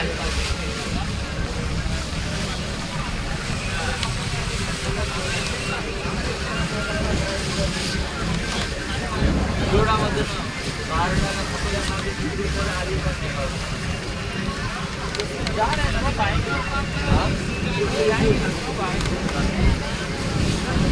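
Water laps and splashes against a moving boat's hull.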